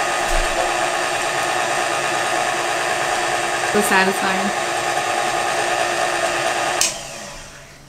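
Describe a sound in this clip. A stand mixer motor hums steadily.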